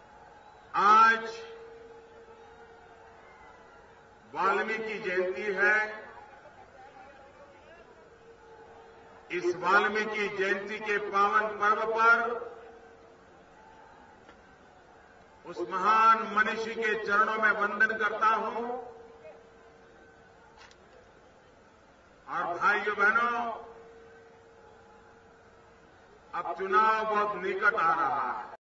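A man speaks forcefully into a microphone over loudspeakers, in short bursts with pauses.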